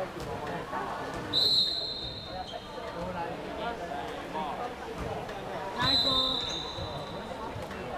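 Young women call out and shout to each other during play.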